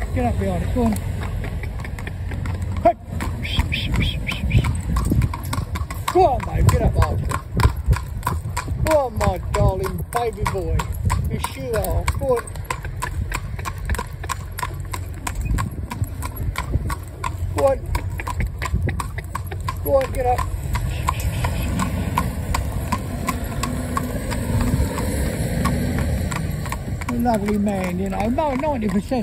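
A horse's hooves clop steadily on a paved road.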